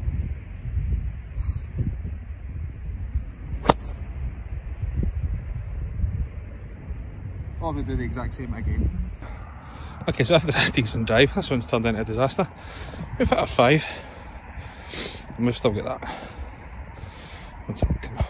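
Wind rumbles across an open field.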